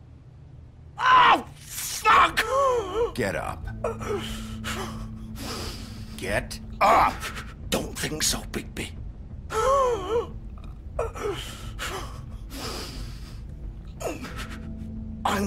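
A man groans and speaks in a pained, rasping voice.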